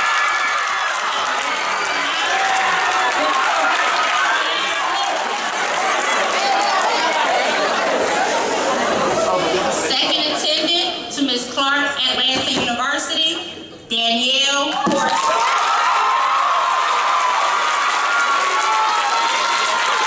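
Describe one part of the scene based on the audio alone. A crowd claps and cheers loudly in an echoing hall.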